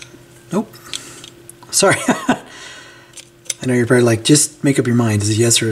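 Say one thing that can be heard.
Small metal tools click and clink together.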